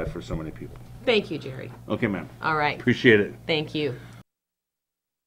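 A middle-aged woman talks with animation.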